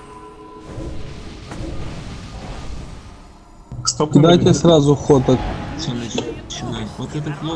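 Magic spells crackle and combat clashes in a video game battle.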